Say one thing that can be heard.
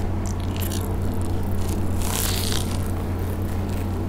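A young woman bites into crispy batter with a loud crunch.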